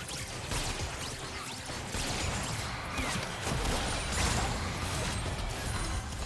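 Game fight effects of spells and weapon hits crackle and crash.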